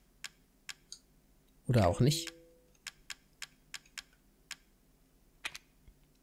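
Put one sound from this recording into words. Short menu clicks tick as a selection moves through a list.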